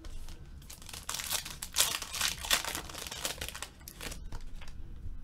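Foil card wrappers crinkle and tear as hands open a pack.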